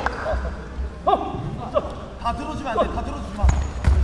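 A man shouts short commands in a large echoing hall.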